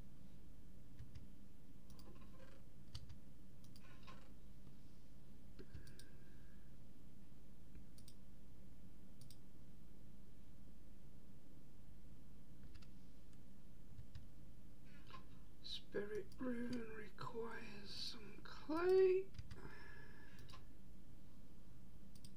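Soft clicks sound as items are picked up and moved.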